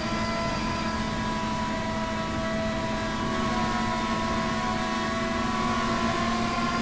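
A racing car engine screams at high revs, steady and slowly rising.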